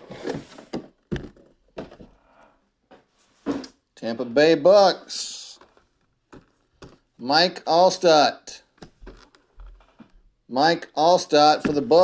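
A plastic case clicks and rattles as it is handled.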